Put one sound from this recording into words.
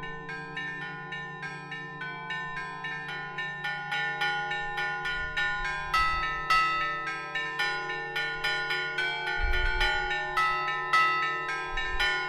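Bells ring out a quick melody, each strike ringing on.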